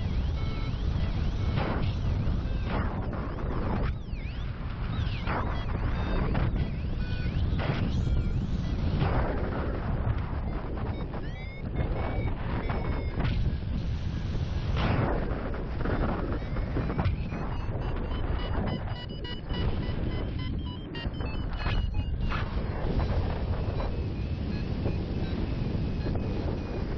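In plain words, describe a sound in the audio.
Strong wind rushes and buffets loudly over a microphone outdoors.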